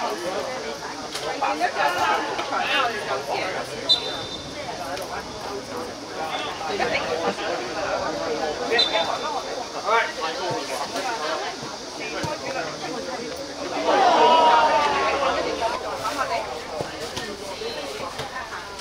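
Young men shout to each other across an open pitch.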